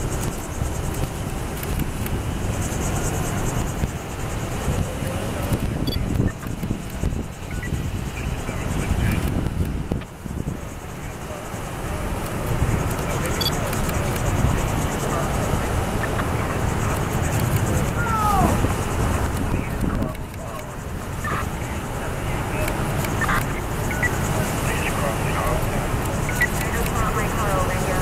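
Engines of passing cars and SUVs hum by steadily, outdoors.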